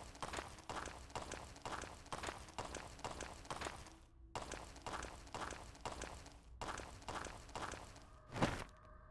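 Footsteps thud steadily on a stone floor.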